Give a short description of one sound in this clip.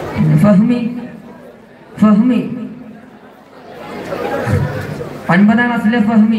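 A man chants loudly through a loudspeaker in bursts, echoing outdoors.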